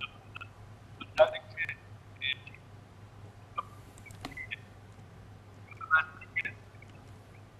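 A man speaks in bursts over a remote call connection.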